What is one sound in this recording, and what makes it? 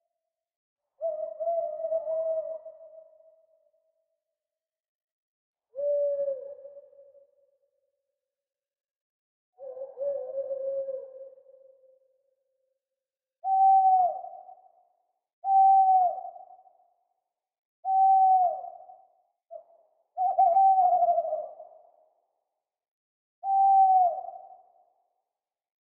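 An owl hoots again and again, with short pauses between calls.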